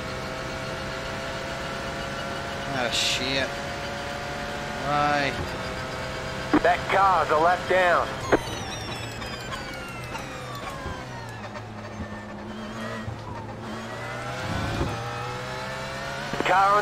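A racing car engine drones at high revs, its pitch climbing and falling.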